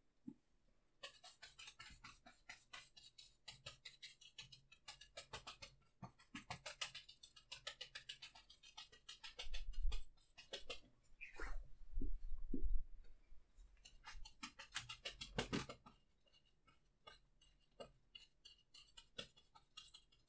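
A brush scrubs and taps against a canvas.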